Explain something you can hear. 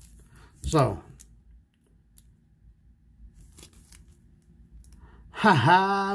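A plastic card sleeve crinkles softly between fingers.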